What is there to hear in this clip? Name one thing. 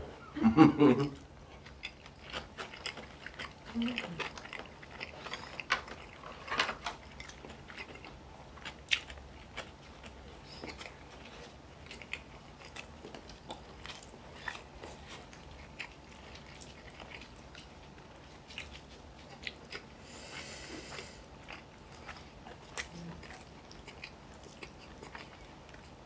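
Chopsticks click against bowls and dishes.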